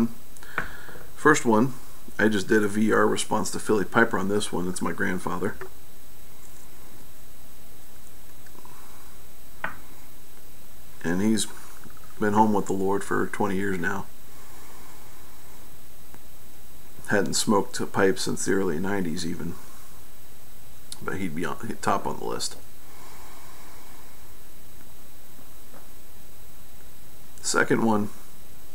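A middle-aged man talks calmly with pauses, close to the microphone.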